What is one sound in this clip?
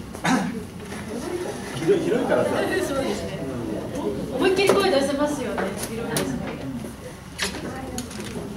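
Equipment knocks and clatters as it is moved.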